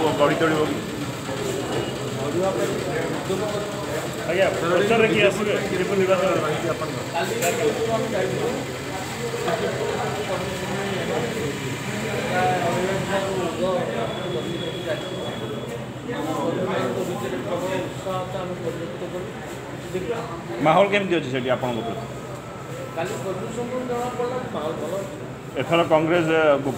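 An elderly man speaks steadily into close microphones.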